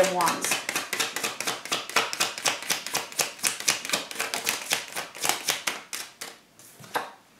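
Playing cards riffle and slap rapidly as a deck is shuffled close by.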